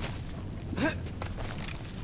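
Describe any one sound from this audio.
Fire roars and crackles close by.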